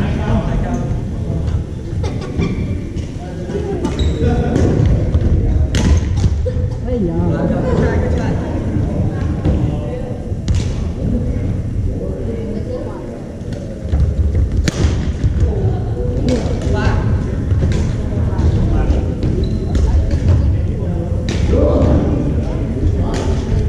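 Many people talk in the background, echoing in the hall.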